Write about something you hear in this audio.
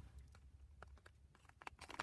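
Scissors snip through a plastic packet.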